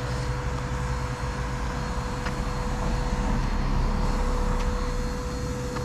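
A car passes on the road nearby.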